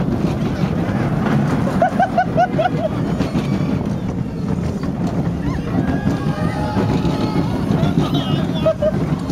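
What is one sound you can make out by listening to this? Wind rushes past the microphone outdoors.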